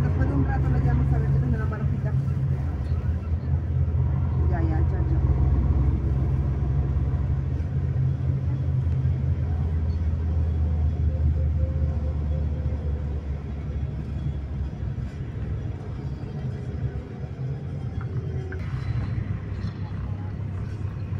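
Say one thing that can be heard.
A vehicle engine rumbles low and steady while moving.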